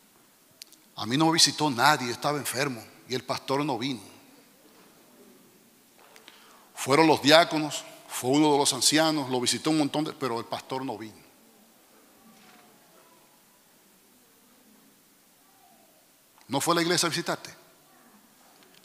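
A middle-aged man preaches with animation through a microphone in a large echoing hall, pausing between phrases.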